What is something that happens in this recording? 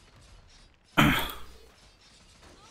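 A magic spell bursts with a loud whoosh.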